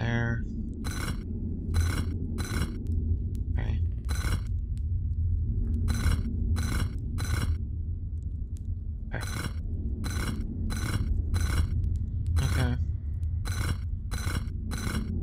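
Stone blocks rotate with short, sharp clunks, again and again.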